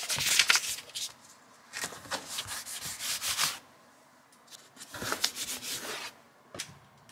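A paper note crinkles and rustles as fingers press it onto a plastic box.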